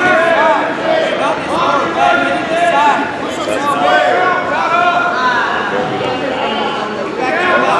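A crowd of young people shouts and cheers with animation in an echoing gym.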